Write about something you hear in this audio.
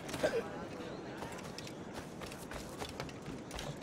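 Footsteps patter quickly over ground and wooden planks.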